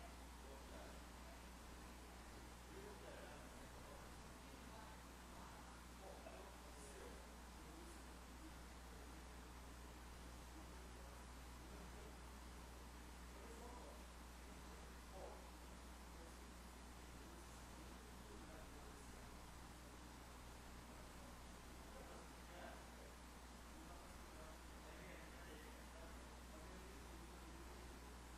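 A man speaks faintly and calmly through a microphone in a large echoing hall.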